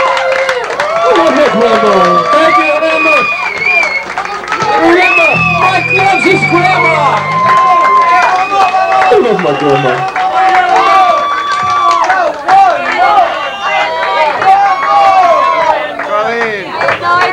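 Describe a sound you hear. A saxophone plays along with the band.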